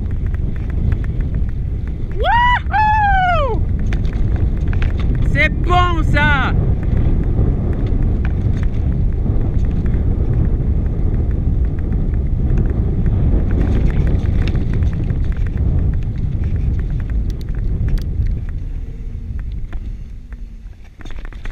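Wind rumbles loudly across the microphone.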